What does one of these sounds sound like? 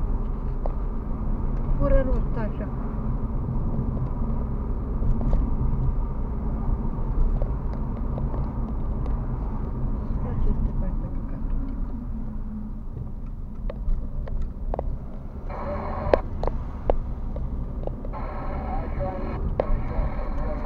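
A car's engine and tyres rumble on asphalt, heard from inside the car.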